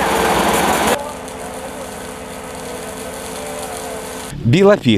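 A truck engine idles steadily.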